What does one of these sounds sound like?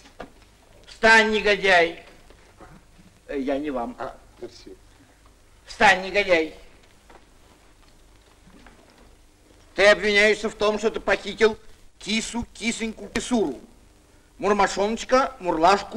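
A man speaks with animation, in short bursts.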